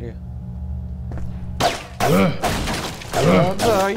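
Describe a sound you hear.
Wooden crates smash and splinter.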